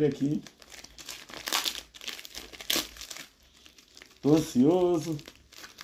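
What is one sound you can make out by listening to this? A blade slits through a plastic bag.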